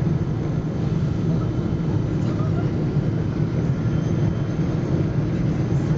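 A jet engine roars steadily and loudly, heard from inside an airplane cabin.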